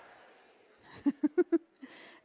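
A woman laughs softly through a microphone.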